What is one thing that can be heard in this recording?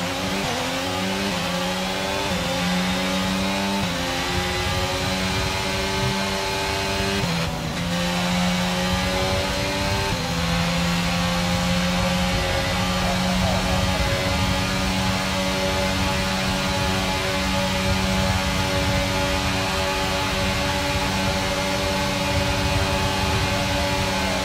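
A racing car's engine screams at high revs, shifting gears.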